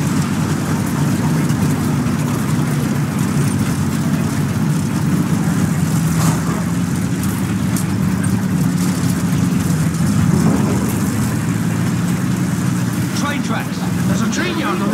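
Tank tracks clank and grind as the tank rolls forward.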